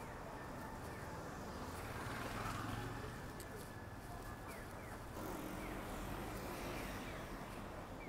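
A motor scooter passes close by.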